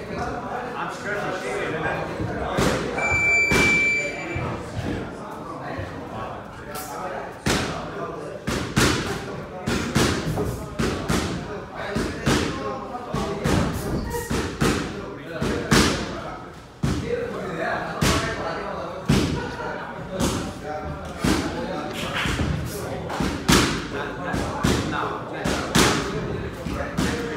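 A boxer's feet shuffle and thud on the floor.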